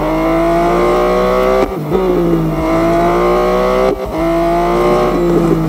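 A racing car engine roars at high revs, dropping briefly as it shifts gears.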